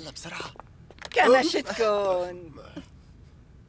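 A young woman cries out loudly in surprise.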